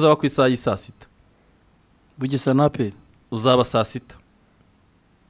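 A man speaks into a close microphone in short bursts.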